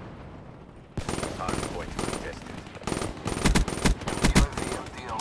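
A gun fires in rapid bursts with sharp, loud bangs.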